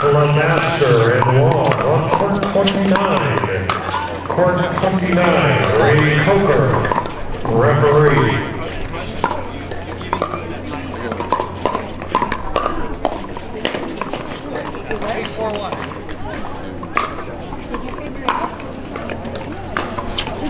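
Pickleball paddles pop against balls on nearby courts.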